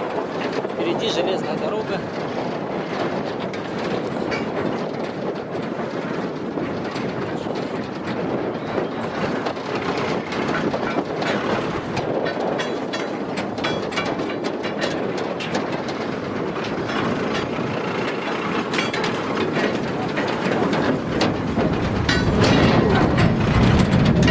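A vehicle body rattles and bumps over uneven tracks.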